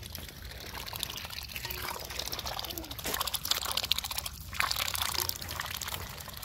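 Ducks dabble and slurp wetly at food in a bowl, close by.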